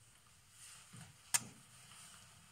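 A woman blows a loud kiss close by.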